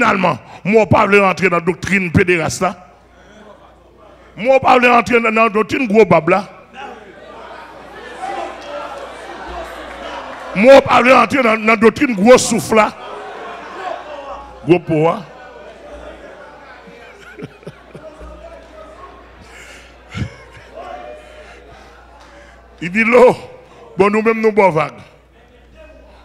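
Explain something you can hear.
An adult man preaches forcefully into a microphone, heard through loudspeakers in bursts.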